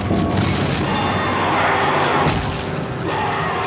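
A monster lets out a harsh, rasping shriek.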